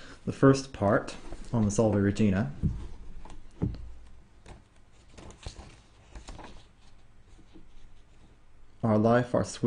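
Book pages rustle as they turn.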